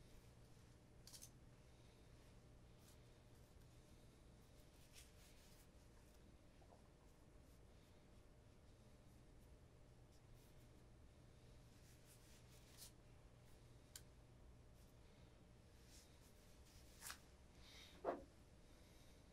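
A cloth rustles as it is folded.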